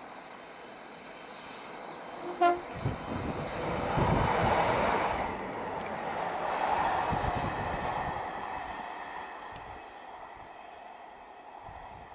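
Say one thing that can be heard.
A diesel multiple-unit train approaches along the track.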